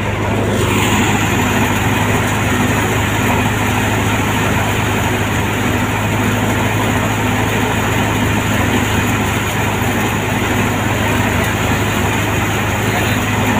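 A threshing machine roars and drones steadily.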